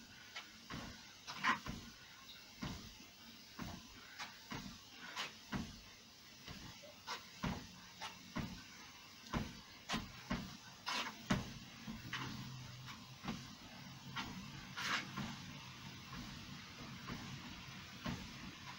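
Feet thud steadily on a running treadmill belt.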